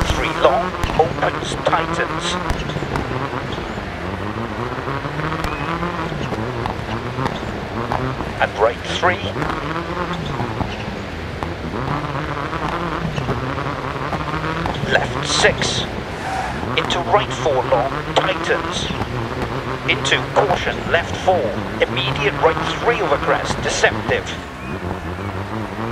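A rally car engine revs hard, rising and falling through the gears.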